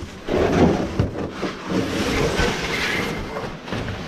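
A large plastic part rustles and scrapes against a cloth cover as it is handled.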